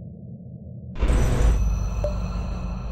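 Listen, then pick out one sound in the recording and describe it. A loud whoosh bursts out as doors open.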